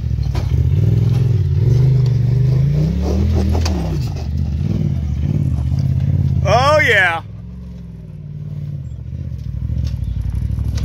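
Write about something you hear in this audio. An off-road buggy engine rumbles and revs as the buggy climbs over dirt mounds.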